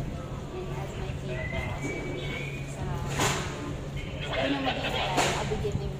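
A young woman sings through a microphone.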